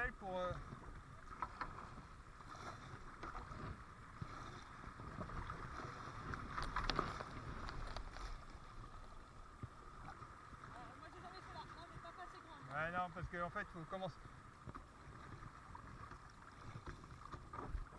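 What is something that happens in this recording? Water rushes and gurgles over shallow rapids.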